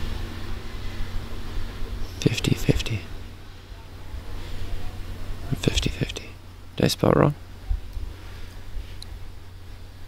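A man talks calmly, close to a microphone.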